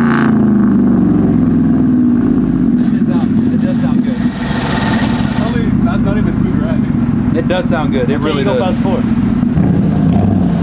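A pickup truck engine idles with a deep, steady exhaust rumble.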